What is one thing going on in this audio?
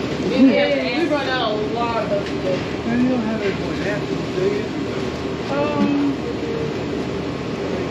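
A plastic bag rustles.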